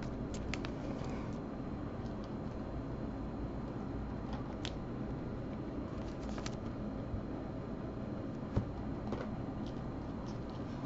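Plastic card sleeves crinkle and rustle in handling.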